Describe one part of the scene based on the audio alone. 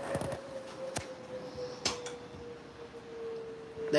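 An oven door creaks open.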